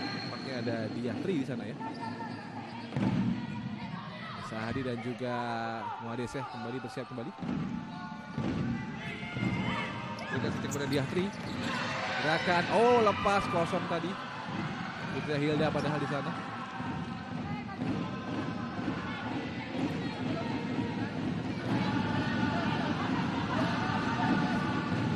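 A ball is kicked across a hard indoor court, echoing in a large hall.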